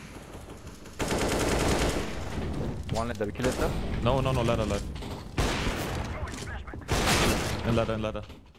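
Rifle shots fire in rapid bursts.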